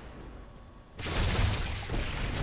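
Gunfire rattles.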